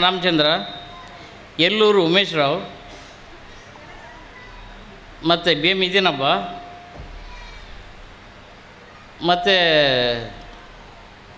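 A middle-aged man speaks loudly and with emphasis into a microphone, in short bursts with pauses, his voice echoing in a hall.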